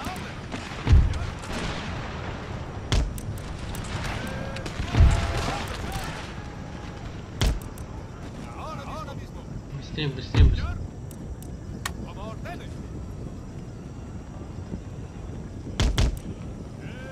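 Cannons fire with loud, deep booms now and then.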